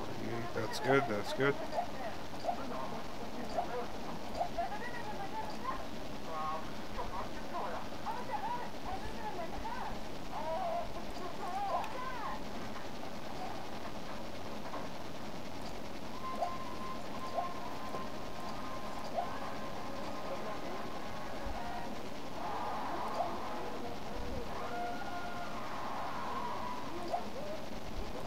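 Game sounds play quietly from a television speaker.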